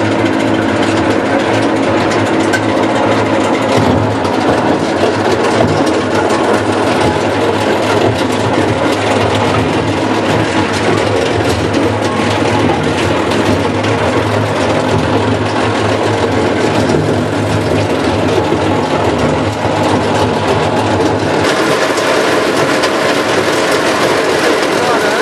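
A machine drum rumbles and hums steadily as it turns.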